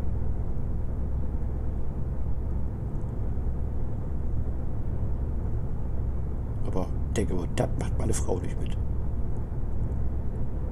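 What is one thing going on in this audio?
A truck engine hums steadily while driving.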